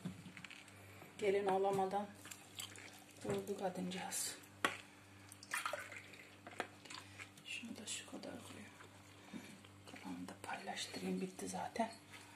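Liquid trickles into a glass jar.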